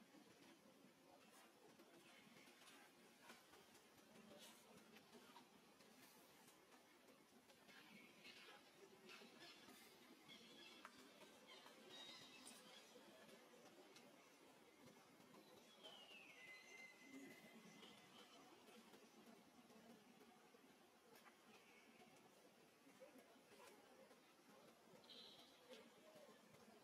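A baby monkey squeaks softly now and then.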